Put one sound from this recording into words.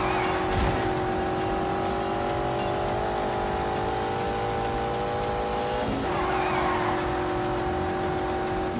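A sports sedan engine races at full throttle, climbing in pitch.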